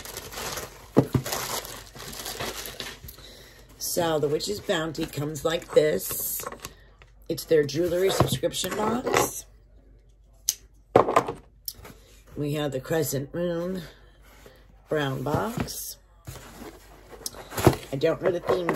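A cardboard box knocks and scrapes against a table.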